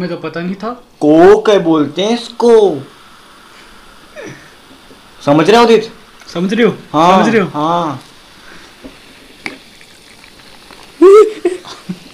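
Fizzy soda pours and foams into a glass.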